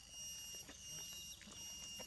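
A monkey rustles through dry leaves as it walks.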